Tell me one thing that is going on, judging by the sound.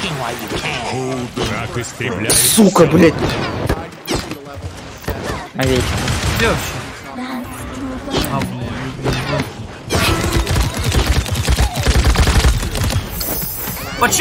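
Energy weapons fire in quick bursts.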